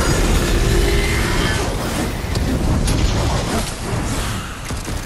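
Heavy blows and blasts boom in a fight.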